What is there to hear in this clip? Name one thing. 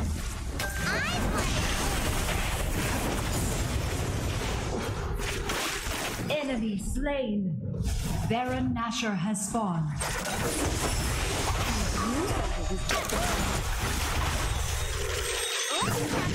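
Magic blasts and weapon clashes ring out in a fast video game battle.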